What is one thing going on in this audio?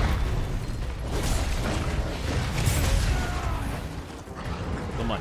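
A large monster stomps heavily.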